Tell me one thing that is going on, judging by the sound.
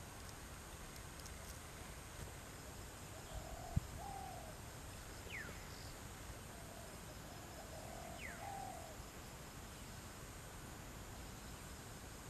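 A small wading bird steps softly through shallow water.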